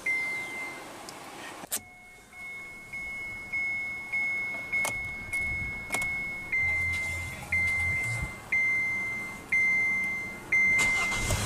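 A car's warning chime beeps over and over at an even pace.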